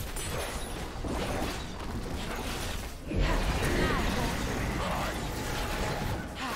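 Magic spells crackle and burst during a fast fight.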